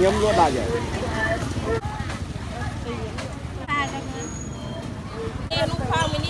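Several women chatter and call out close by outdoors.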